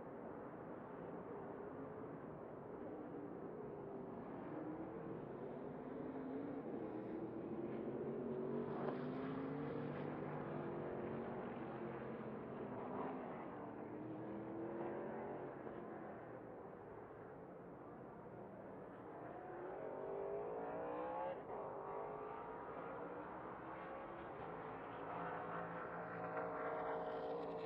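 Race truck engines roar and rise and fall in pitch as the trucks speed by.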